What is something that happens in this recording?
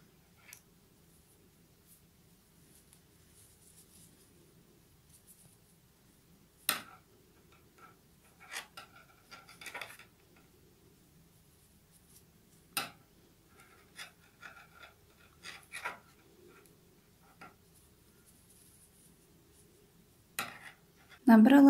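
Knitting needles click and tap softly against each other.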